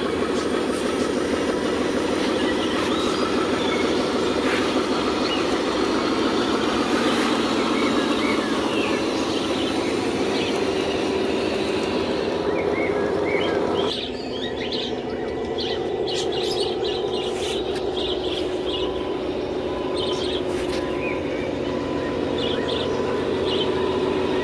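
A toy truck's electric motor whines steadily as it drives on dirt.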